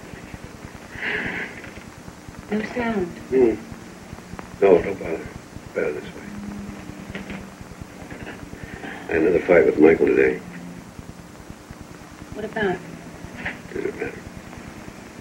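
A man speaks quietly nearby.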